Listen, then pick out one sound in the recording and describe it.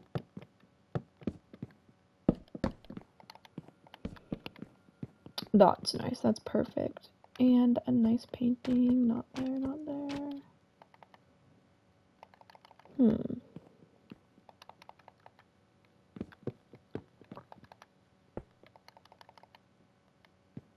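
Blocks knock softly as they are placed, one after another.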